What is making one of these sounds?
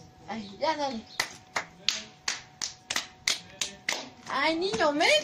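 Two boys clap their hands together in quick rhythm.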